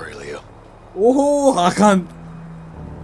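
A young man laughs into a nearby microphone.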